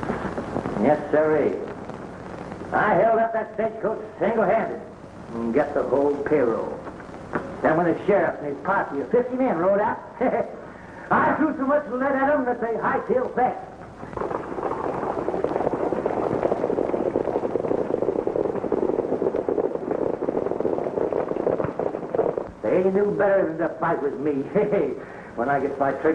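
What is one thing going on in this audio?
A man speaks gruffly, close by.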